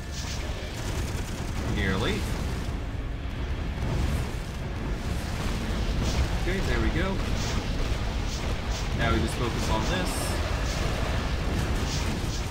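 Fiery beams roar and crackle as spells are cast.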